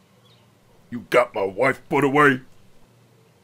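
An older man speaks gruffly and close by.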